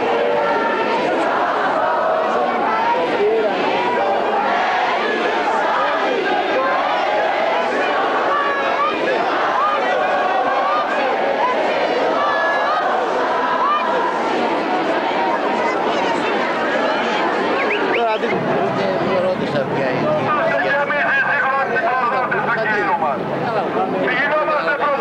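A large outdoor crowd chants and murmurs loudly.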